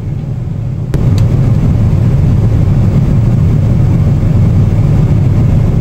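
A film soundtrack plays faintly from a small speaker.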